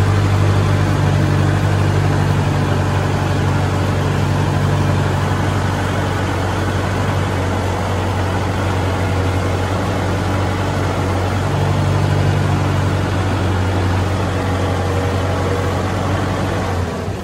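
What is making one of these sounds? Water and mud splash and churn under a disc plough.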